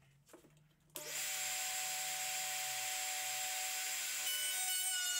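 A handheld router runs with a steady high whine.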